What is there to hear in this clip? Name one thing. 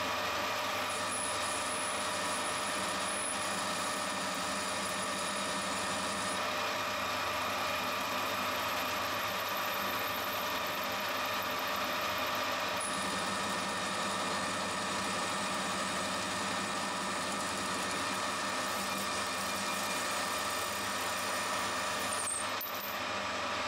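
A hand-held deburring tool scrapes against spinning metal with a high squeal.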